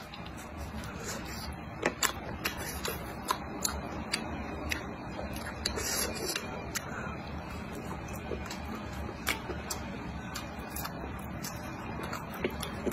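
A young woman chews crunchy food with loud, wet mouth sounds close to the microphone.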